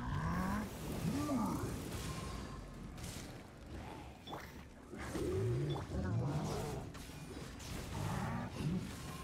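Game combat effects crash and whoosh.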